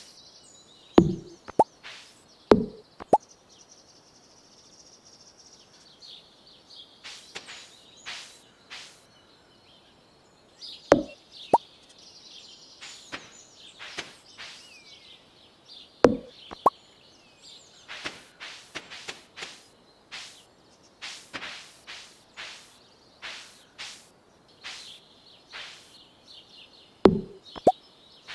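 Tall grass is slashed with quick swishing thuds.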